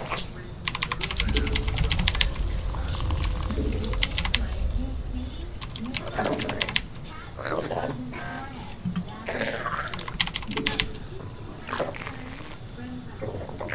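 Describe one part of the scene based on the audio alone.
Short electronic game sound effects chirp and click.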